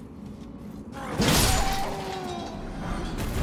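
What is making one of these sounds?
A bright shimmering chime rings out.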